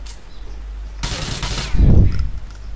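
Gunshots fire in a quick burst.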